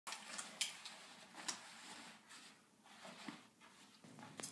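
Clothes rustle softly.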